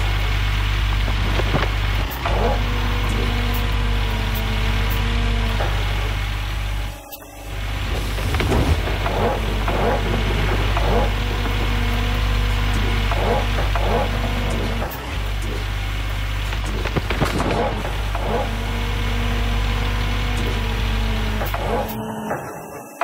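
A heavy diesel engine rumbles steadily.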